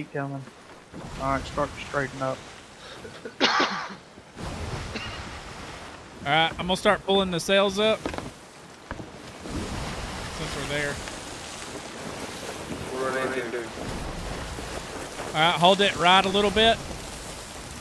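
Rough sea waves roll and crash.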